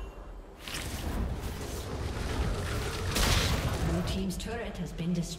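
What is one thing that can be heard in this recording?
Video game combat effects crackle and clash.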